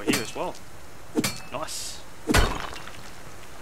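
A pickaxe strikes rock with sharp, ringing clanks.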